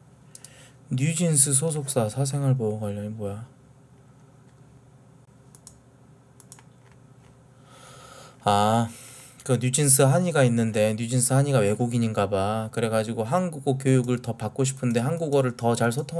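A man speaks close to a microphone, with animation.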